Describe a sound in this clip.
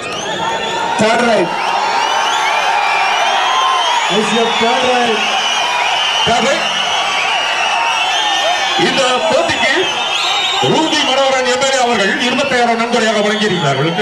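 Young men on the court shout to each other.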